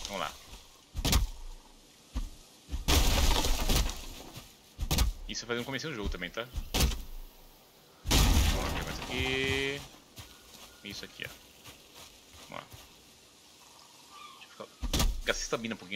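An axe strikes wood with sharp thuds.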